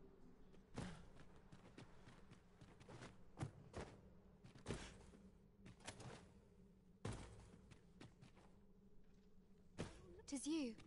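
Footsteps crunch slowly on rocky ground.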